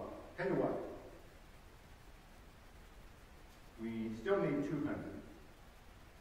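A middle-aged man speaks slowly and calmly into a microphone, with long pauses.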